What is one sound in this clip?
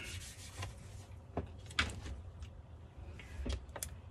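A small piece of card is set down on a table with a light tap.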